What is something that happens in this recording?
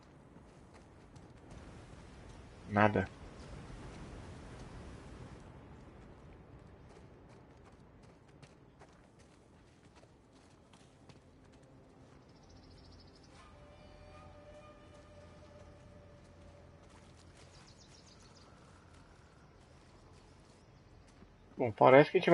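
Footsteps crunch on stone and grass.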